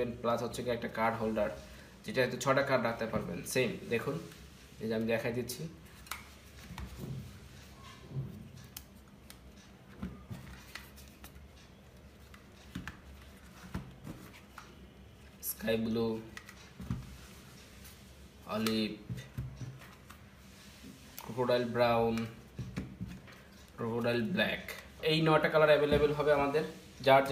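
Small leather wallets click and rustle as hands pick them up and flip them open.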